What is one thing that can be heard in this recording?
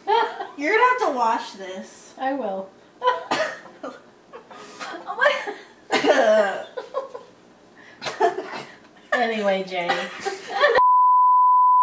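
An older woman talks and laughs close by.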